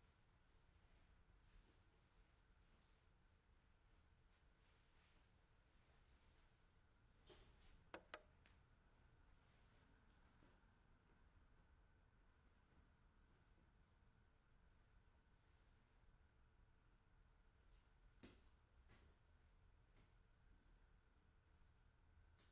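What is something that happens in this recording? Silk fabric rustles as it is unfolded and draped.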